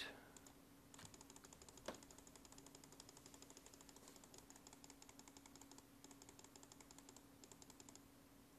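A game character works at an item with rapid, soft, repeated scraping.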